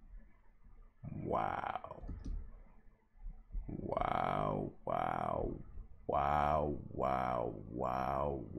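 A young man sings loudly in long, drawn-out notes close to a microphone.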